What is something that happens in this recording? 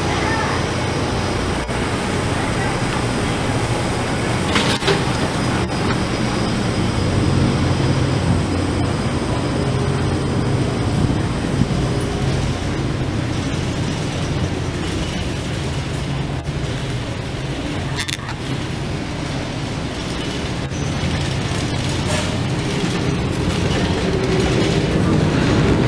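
A ship's engines drone low and steadily.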